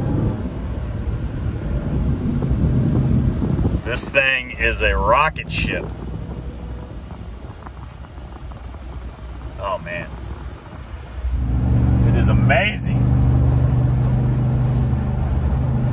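Tyres hum steadily on a highway.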